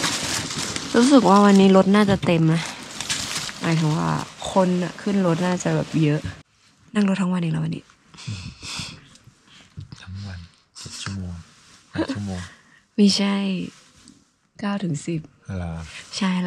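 A young woman talks close up, with animation.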